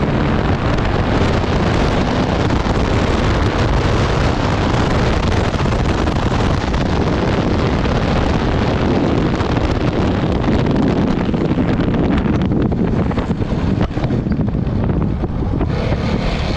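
Tyres rumble and crunch over a sandy dirt track.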